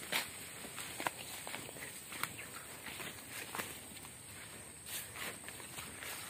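Leaves and stems brush and crackle against legs.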